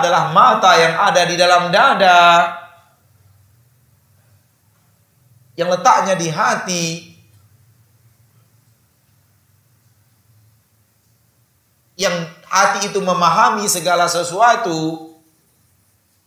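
A man speaks calmly into a close microphone, in pauses.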